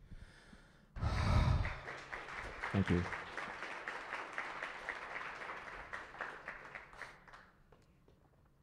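An audience applauds in a hall.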